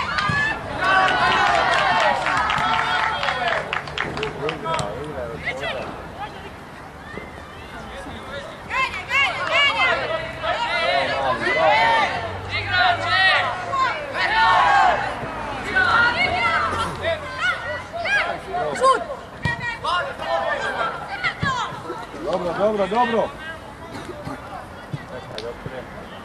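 Spectators shout and cheer outdoors at a distance.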